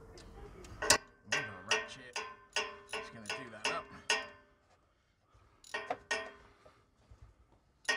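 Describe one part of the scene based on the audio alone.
A socket ratchet clicks rapidly as it turns a bolt.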